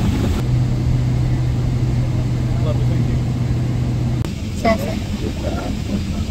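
A steady low drone of an aircraft cabin hums throughout.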